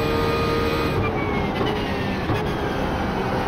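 A racing car engine drops in pitch as the car slows for a corner.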